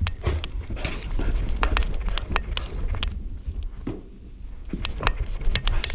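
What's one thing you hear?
A dog's paws thump down stairs.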